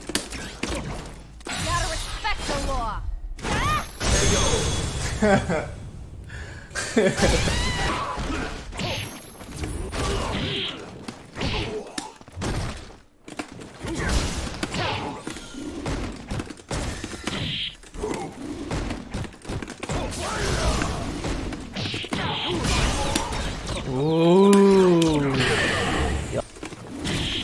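Fighting game punches and kicks land with heavy smacks and thuds.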